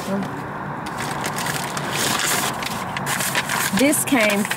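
A paper envelope rustles and crinkles.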